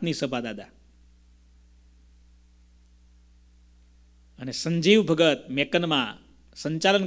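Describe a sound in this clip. A man speaks calmly and warmly into a close microphone, with pauses.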